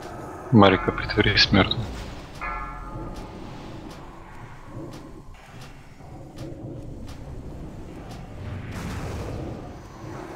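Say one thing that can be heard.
Magic spells crackle and whoosh.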